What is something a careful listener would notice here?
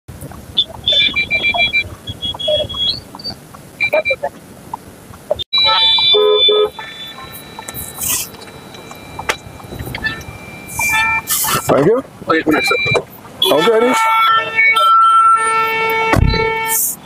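Car horns honk repeatedly in street traffic.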